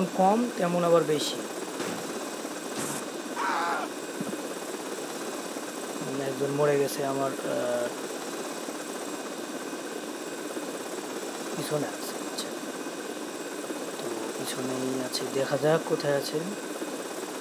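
A small remote-controlled helicopter buzzes steadily.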